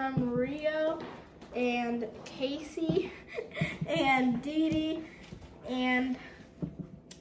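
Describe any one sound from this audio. A young girl speaks excitedly close by.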